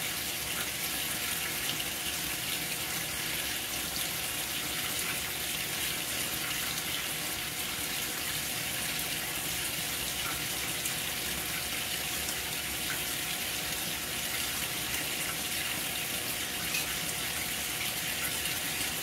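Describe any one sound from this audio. Water sloshes and splashes inside a washing machine drum.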